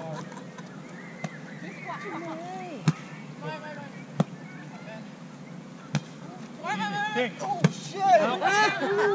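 Young men and women call out and shout to each other outdoors.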